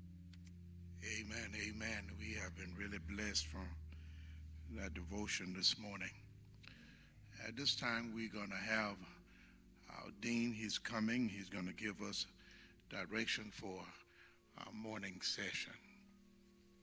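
An older man speaks into a microphone with animation, heard through loudspeakers in a large echoing hall.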